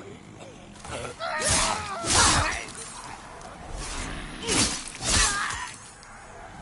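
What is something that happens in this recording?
Swords clash and slash with loud impacts.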